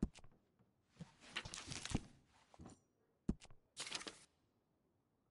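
Paper pages rustle and flip as they are turned.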